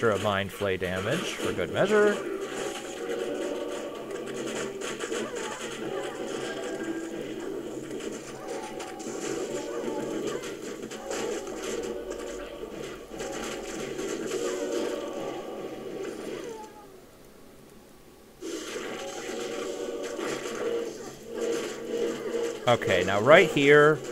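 Electric spells crackle and zap in rapid bursts.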